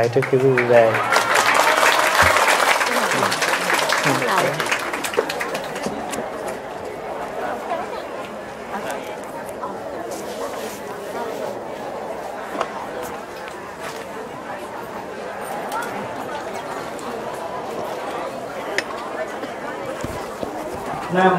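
A crowd of people murmurs and talks quietly in a room.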